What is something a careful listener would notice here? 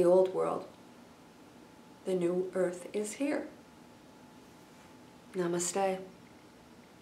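A middle-aged woman speaks calmly and close to a microphone, in short phrases with pauses.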